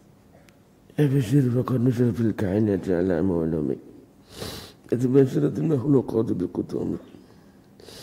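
A middle-aged man chants a prayer into a microphone, heard through a loudspeaker in a reverberant room.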